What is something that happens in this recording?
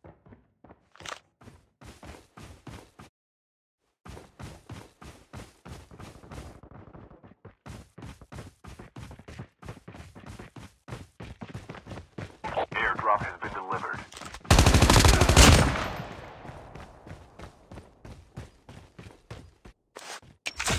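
Footsteps thud quickly and evenly on the ground.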